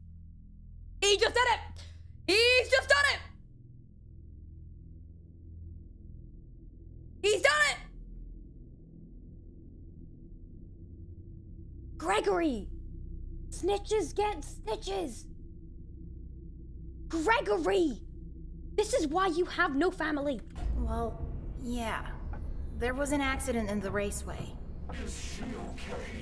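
A young woman talks and exclaims with animation into a close microphone.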